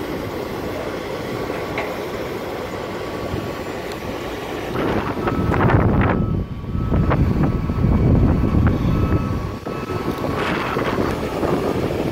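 Wind gusts and rumbles against the microphone outdoors.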